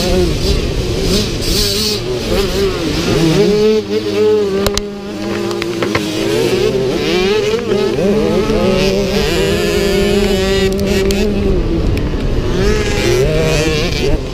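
A dirt bike engine roars close by, revving up and down as it shifts gears.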